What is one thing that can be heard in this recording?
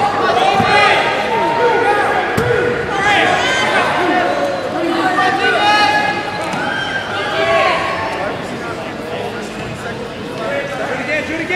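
A crowd of young people shouts and cheers excitedly in a large echoing hall.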